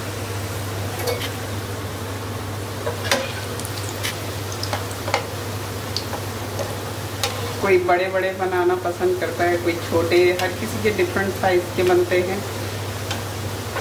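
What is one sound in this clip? A metal spatula scrapes and taps against a pan.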